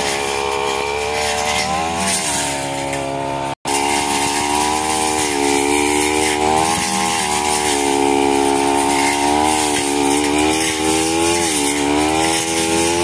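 Grass is slashed by a spinning trimmer line.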